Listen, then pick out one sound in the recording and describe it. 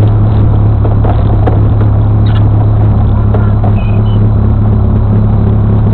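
Rocks knock and scrape under tyres.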